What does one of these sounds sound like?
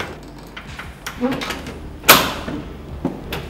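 A metal door handle clicks and rattles.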